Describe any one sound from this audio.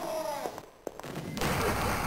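A gun fires energy shots with sharp zaps.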